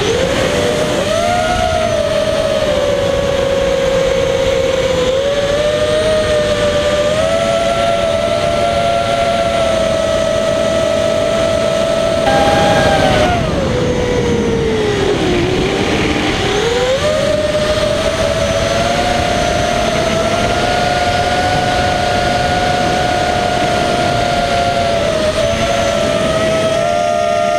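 A small electric motor whines steadily close by, dipping low in pitch and rising again as it throttles down and back up.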